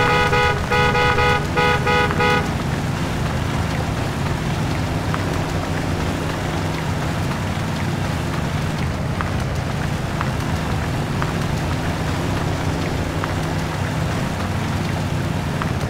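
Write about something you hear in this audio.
A truck engine rumbles steadily as it drives slowly.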